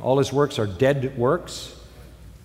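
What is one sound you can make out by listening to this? An elderly man speaks steadily into a microphone in a large hall.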